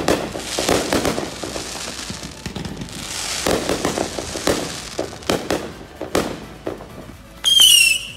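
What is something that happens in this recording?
Fireworks crackle and pop in the sky.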